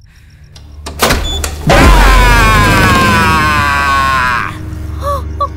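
A young woman screams loudly.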